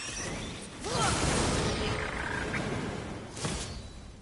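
A fiery blast roars loudly.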